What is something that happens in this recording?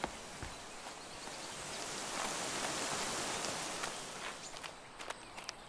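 A fountain splashes and trickles nearby.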